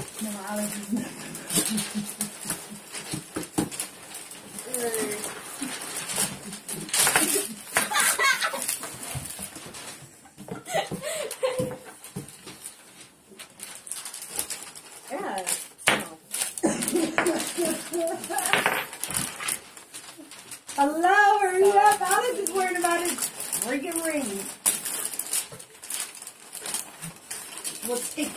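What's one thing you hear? Wrapping paper rustles and tears loudly up close.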